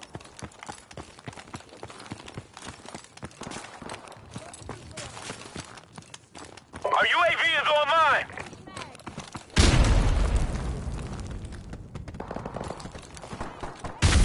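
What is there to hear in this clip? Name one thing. Footsteps crunch on gravel and debris.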